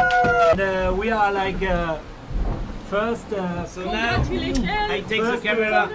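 A young man laughs and talks excitedly close by.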